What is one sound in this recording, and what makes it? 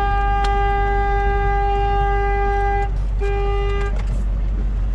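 A truck horn blares in two long blasts.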